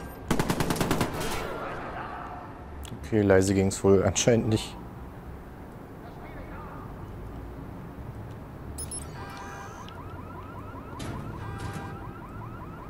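Rapid bursts of automatic gunfire ring out.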